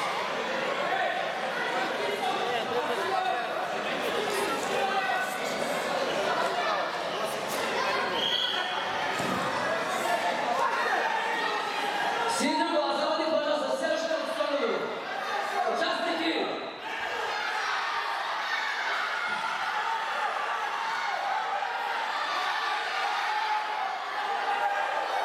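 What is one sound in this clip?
Children's voices chatter in a large echoing hall.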